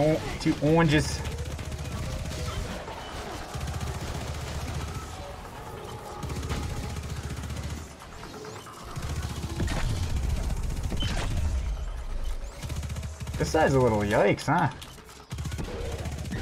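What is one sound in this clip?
Rapid gunfire and blasts ring out from a video game.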